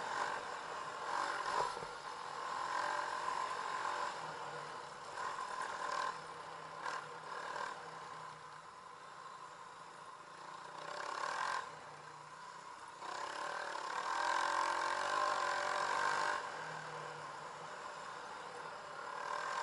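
A dirt bike engine revs and hums up close, rising and falling.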